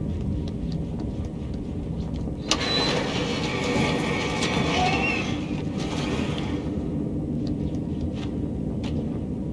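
Small footsteps patter on a hard tiled floor.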